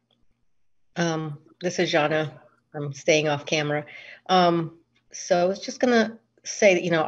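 A middle-aged woman speaks calmly over an online call.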